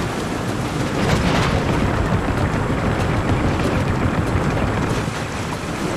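Wheels rumble louder over a wooden bridge.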